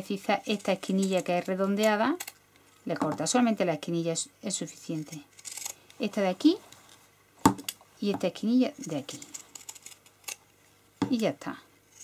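Pinking shears snip through layers of fabric.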